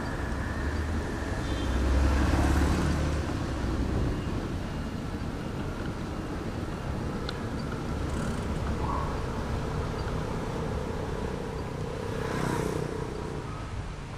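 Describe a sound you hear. A motorbike engine hums a short way ahead.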